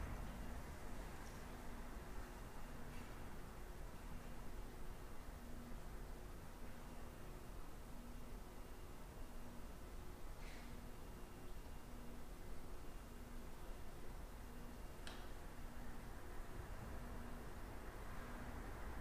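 An elderly woman speaks calmly into a microphone in a large echoing room.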